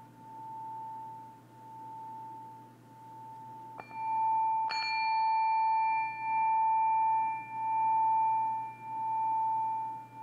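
A singing bowl hums with a steady, pulsing ring as a mallet circles its rim.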